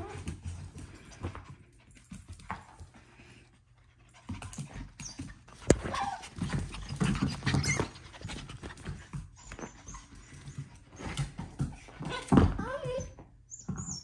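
Small dogs tussle and wrestle playfully in a soft bed.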